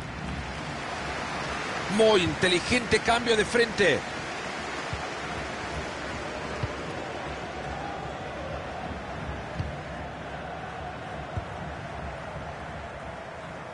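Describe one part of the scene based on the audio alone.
A stadium crowd murmurs steadily.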